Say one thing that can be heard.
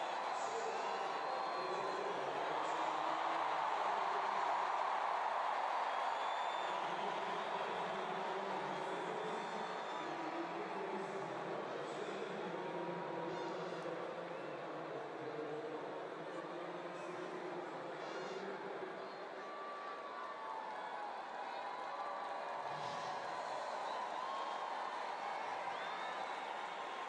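A large stadium crowd murmurs steadily all around.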